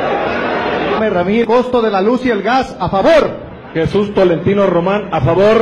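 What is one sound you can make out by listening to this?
A man speaks loudly into a microphone.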